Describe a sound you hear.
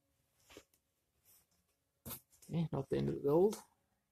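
A plastic bottle bumps against carpet.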